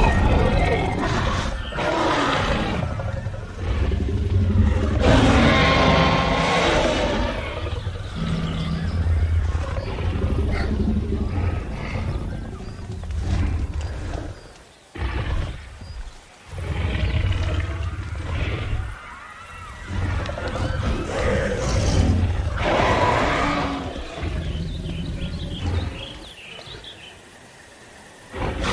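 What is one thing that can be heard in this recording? A large dinosaur roars loudly.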